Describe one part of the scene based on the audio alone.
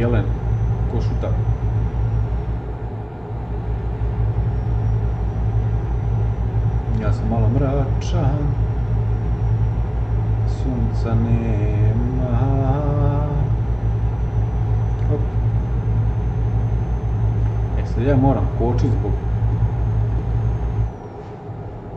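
A truck engine drones steadily, then cuts out.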